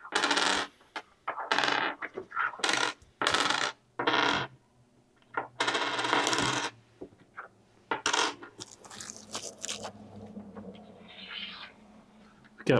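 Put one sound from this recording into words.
Small game tokens click down onto a wooden table.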